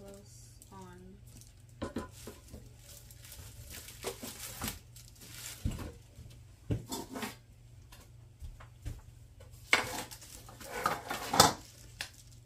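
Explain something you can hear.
A metal pot clanks down on a hot plate.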